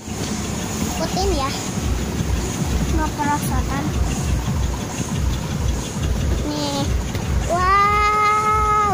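A young girl talks and calls out close by.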